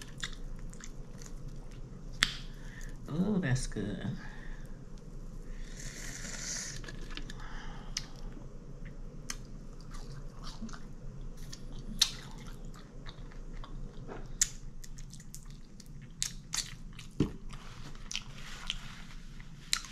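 A woman chews and smacks her lips loudly up close.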